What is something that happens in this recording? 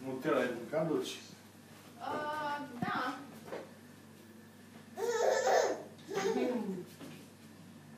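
An elderly woman talks softly and playfully to a baby close by.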